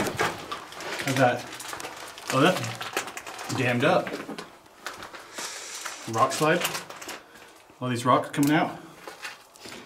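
A man speaks calmly and close by, in bursts with pauses.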